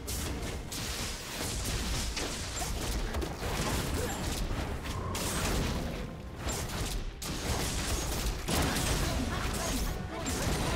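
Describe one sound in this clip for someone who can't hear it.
Fiery magic blasts whoosh and crackle in quick bursts.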